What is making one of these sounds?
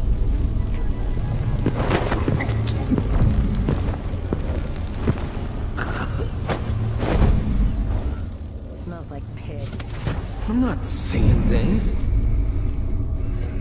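Footsteps thud across a hard floor.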